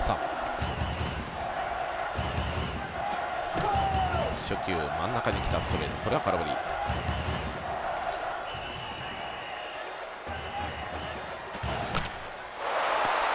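A large crowd chants and cheers steadily in an open stadium.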